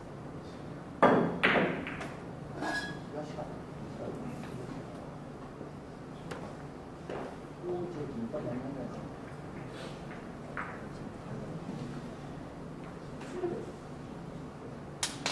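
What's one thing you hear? Billiard balls clack together as they are gathered on a table.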